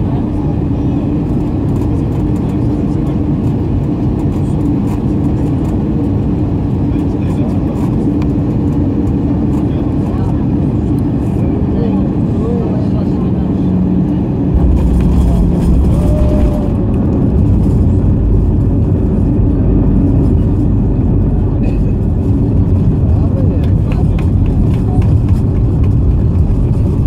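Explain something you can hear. Jet engines roar steadily close by.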